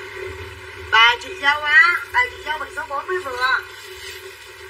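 A young woman speaks loudly and animatedly nearby.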